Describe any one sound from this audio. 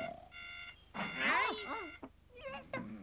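A cartoon cat speaks in a high squeaky voice.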